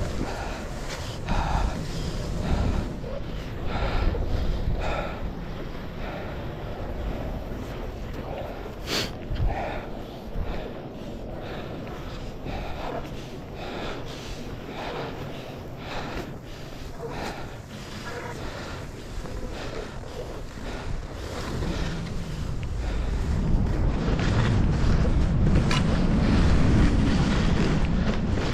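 Skis swish and crunch over snow in a steady rhythm.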